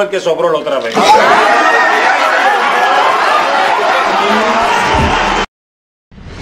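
A group of men and women laugh and cheer loudly.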